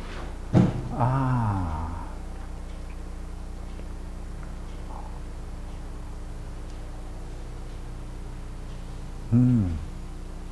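An elderly man speaks slowly and calmly.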